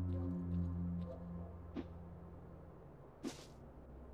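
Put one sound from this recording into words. A crow flaps its wings.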